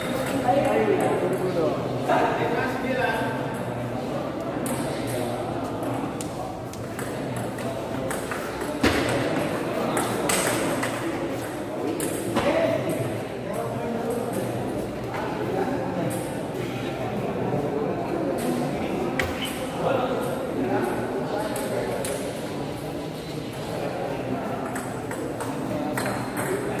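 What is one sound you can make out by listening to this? A ball clicks back and forth across a table.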